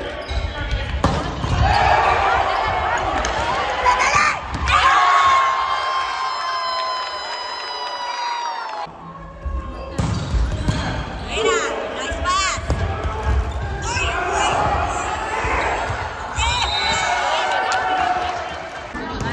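A volleyball is struck hard with a smack.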